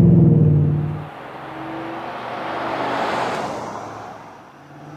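A pickup truck's engine roars as it drives past.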